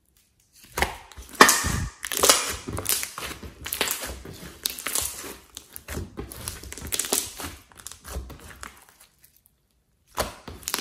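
Sticky slime squelches, pops and crackles as hands squeeze and stretch it.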